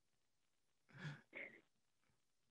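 An older man laughs softly.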